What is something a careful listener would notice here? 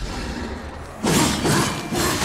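A heavy blade swings and strikes with a wet thud.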